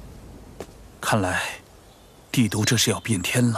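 A man speaks in a low, serious voice.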